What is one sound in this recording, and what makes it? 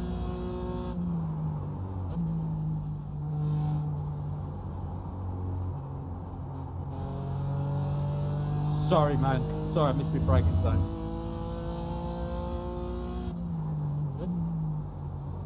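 A racing car engine drops in pitch as the gears shift down.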